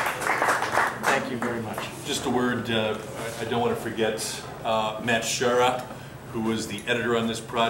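A middle-aged man speaks with animation to a crowd, without a microphone.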